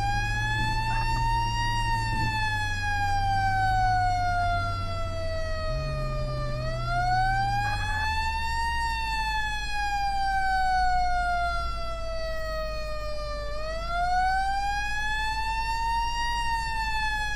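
A siren wails, slowly rising and falling.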